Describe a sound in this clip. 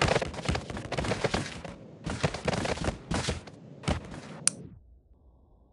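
Heavy bodies thud and crash against each other.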